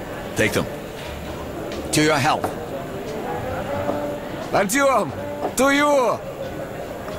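A man speaks in a rough, low voice.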